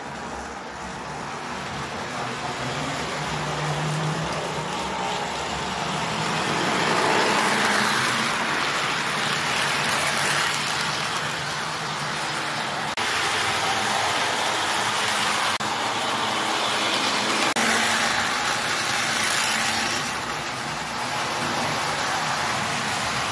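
A toy electric train rumbles and clatters along metal track, growing louder as it passes close by.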